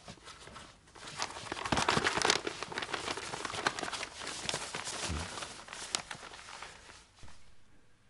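A paper scroll rustles as it is unrolled.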